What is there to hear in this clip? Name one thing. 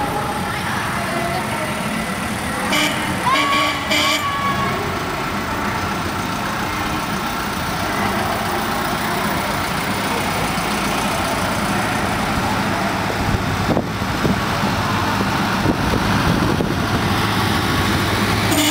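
Traffic rumbles steadily along a busy street outdoors.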